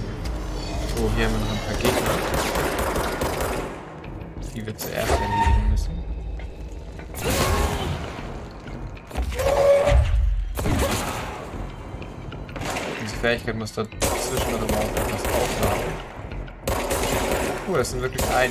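Pistol shots ring out with loud bursts.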